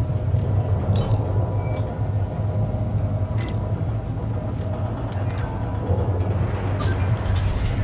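Short, sharp menu clicks sound now and then.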